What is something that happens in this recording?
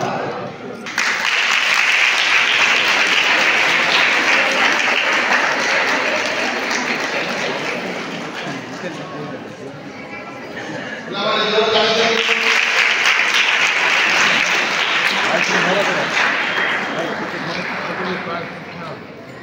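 A large crowd claps and cheers.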